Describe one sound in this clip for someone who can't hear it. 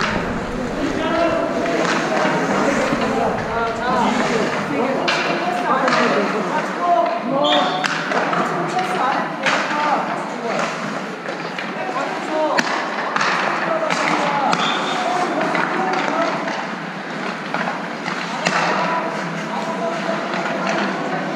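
Men's voices call out in a large echoing rink.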